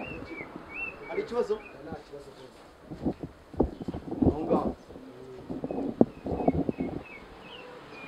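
A young man talks with another young man close by.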